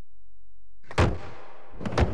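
A skateboard lands with a sharp clack.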